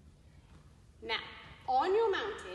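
A young woman speaks with animation in a large echoing hall.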